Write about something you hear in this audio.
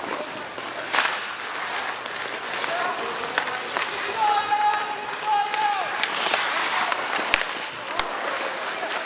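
Hockey sticks clack sharply against the puck and ice.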